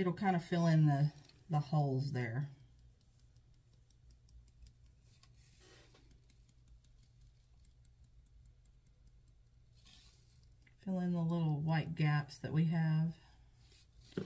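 Glitter patters softly from a small shaker jar.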